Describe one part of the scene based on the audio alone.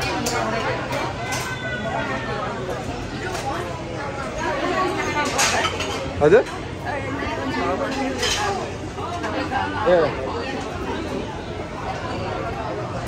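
Several women and children chat and talk over one another close by.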